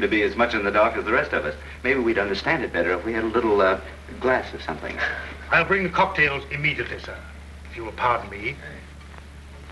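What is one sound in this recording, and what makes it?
A man speaks quietly, heard through an old, hissy film soundtrack.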